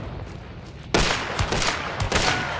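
A pistol fires a loud shot that echoes and fades.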